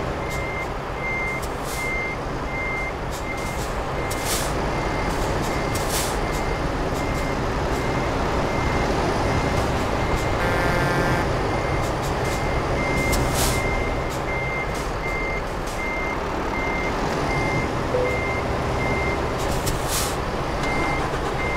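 A truck's reversing alarm beeps at an even pace.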